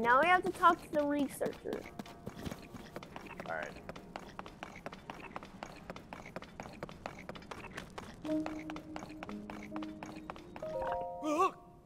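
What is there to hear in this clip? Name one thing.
Footsteps patter quickly on stone.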